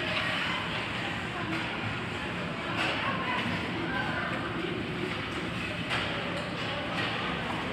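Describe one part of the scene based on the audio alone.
Ice skates scrape and carve across a rink, echoing in a large arena.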